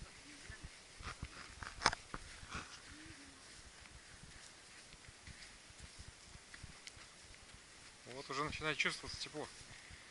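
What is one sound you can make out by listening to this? Footsteps crunch on loose sand.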